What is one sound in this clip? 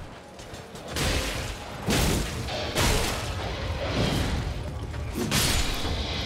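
Heavy blows and impacts crash loudly during a fight.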